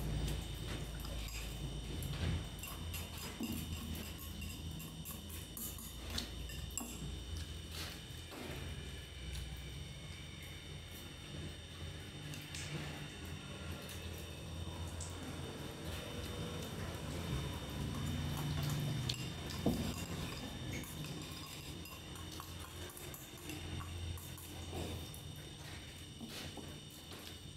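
A young woman chews food noisily close up.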